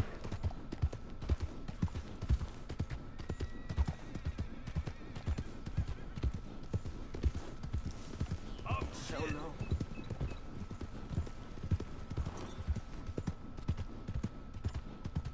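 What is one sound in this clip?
Horse hooves thud steadily on a dirt trail.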